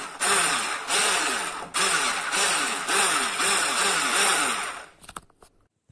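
An electric hand mixer whirs loudly with a pulsing hum.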